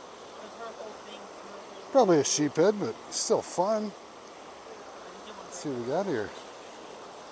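A river rushes over rocks.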